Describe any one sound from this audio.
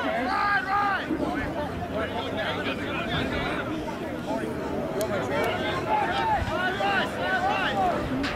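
Young men shout and call out loudly outdoors.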